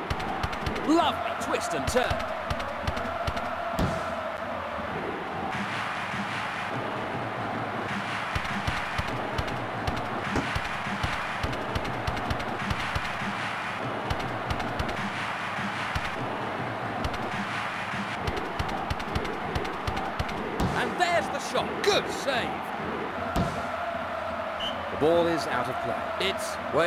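A football is kicked with short dull thuds.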